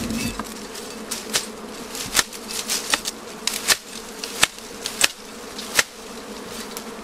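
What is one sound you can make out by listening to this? Dry leaves and twigs crackle and snap close by.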